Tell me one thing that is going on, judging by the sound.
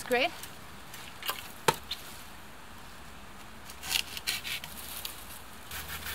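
Branches snap and rustle.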